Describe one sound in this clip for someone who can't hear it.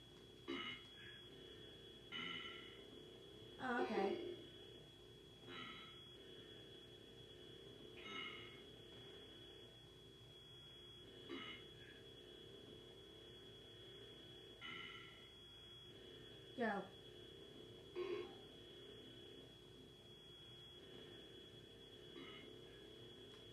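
Retro video game sound effects beep and chirp from a television.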